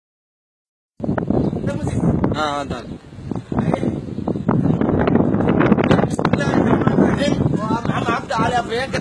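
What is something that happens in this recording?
Several men talk loudly in the background outdoors.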